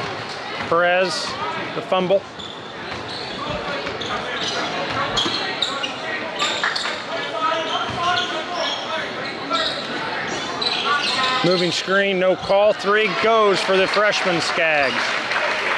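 A large crowd murmurs and cheers in an echoing gym.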